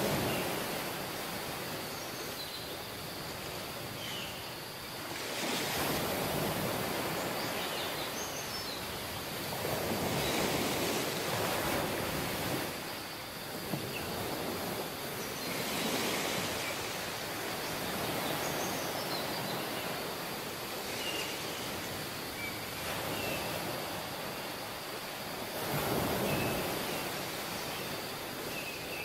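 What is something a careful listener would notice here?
Ocean waves wash onto the shore in repeated surges.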